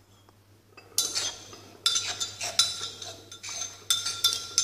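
Fingers scrape a thick paste out of a pot.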